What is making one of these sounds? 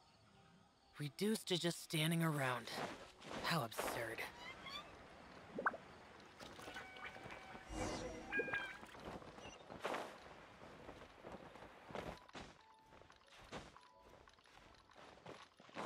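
Wind rushes past during a glide through the air.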